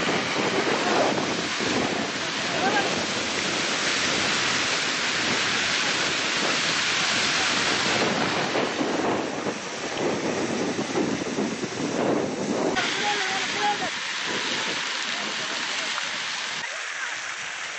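A fire roars and crackles through dry crops.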